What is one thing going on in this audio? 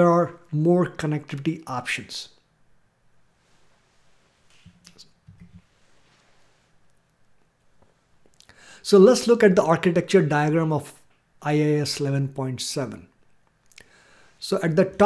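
A man speaks calmly into a close microphone, in pauses, as if explaining.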